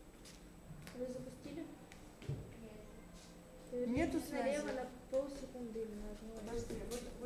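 A young girl speaks close by with animation.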